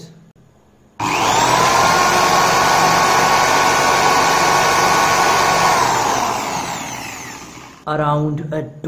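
An electric drill starts with a loud steady whir, then slowly winds down.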